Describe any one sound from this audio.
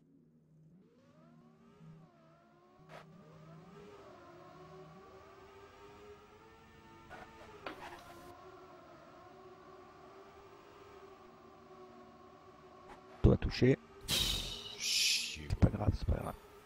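Racing car engines whine steadily, rising and falling in pitch.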